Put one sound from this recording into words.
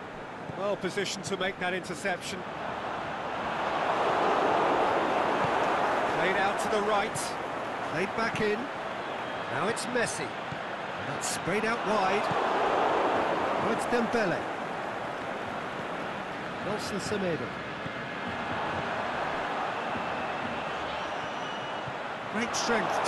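A football thumps as it is kicked.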